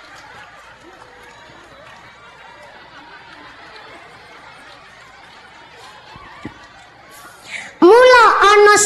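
A crowd murmurs softly.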